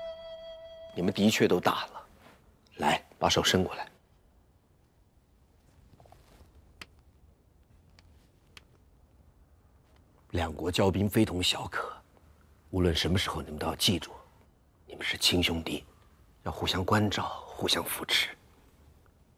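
A middle-aged man speaks calmly and earnestly up close.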